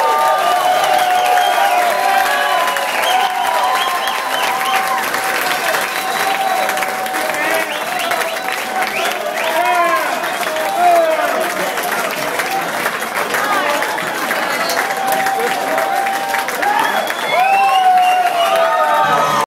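A rock band plays loud, distorted music through speakers in an echoing hall.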